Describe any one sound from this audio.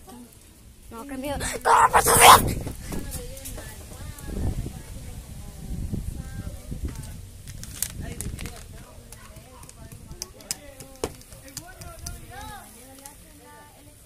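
A young boy talks close to the microphone.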